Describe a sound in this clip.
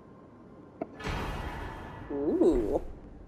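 A bright chime rings out as an item is picked up.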